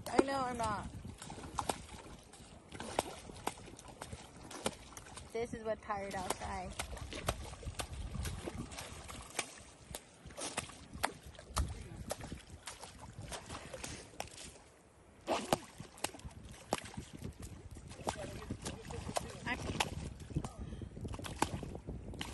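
A large ray thrashes and splashes in shallow water.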